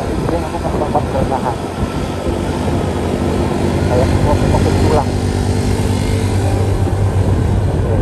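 A motorbike engine hums close by and then fades.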